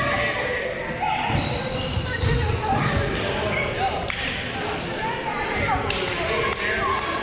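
A volleyball thumps and bounces on a wooden floor.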